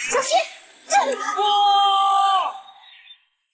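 A young man shouts in alarm.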